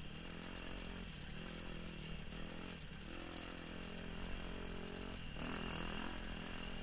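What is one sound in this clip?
A dirt bike engine revs loudly up close, rising and falling in pitch.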